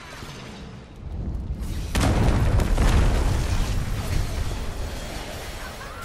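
A huge creature smashes through rubble with a deep, loud rumble.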